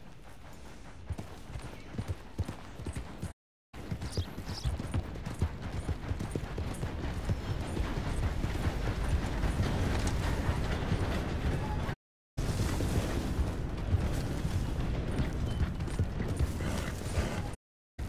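A horse's hooves pound the ground at a fast gallop.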